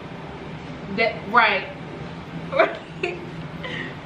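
A young woman laughs loudly close by.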